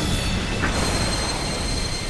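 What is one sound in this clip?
A magic beam fires with a sharp zap.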